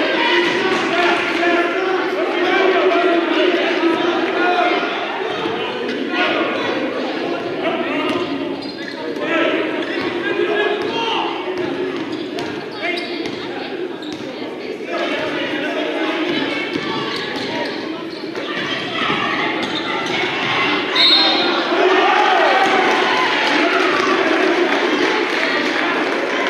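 A crowd cheers and chatters throughout a large echoing gym.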